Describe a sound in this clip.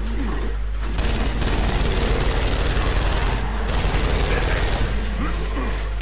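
A rifle fires in rapid, rattling bursts.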